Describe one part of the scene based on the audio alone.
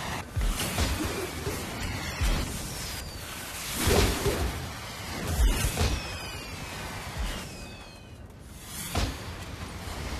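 Game spell effects whoosh and crackle.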